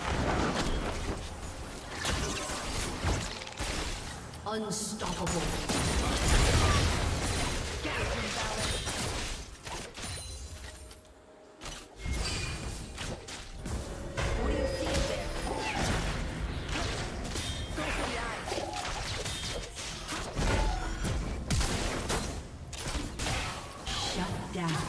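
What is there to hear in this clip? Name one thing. Video game spell effects whoosh, crackle and burst in quick succession.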